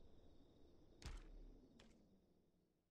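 A game interface clicks as a menu closes.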